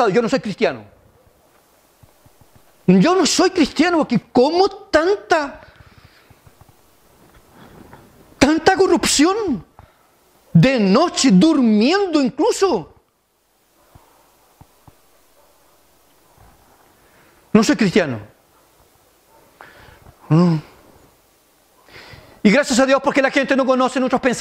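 A middle-aged man speaks with animation through a microphone, in bursts with pauses.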